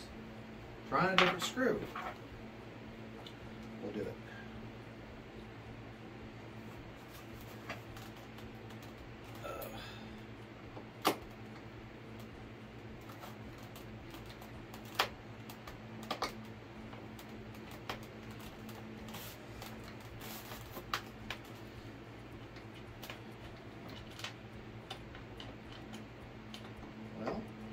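Small plastic parts click and tap.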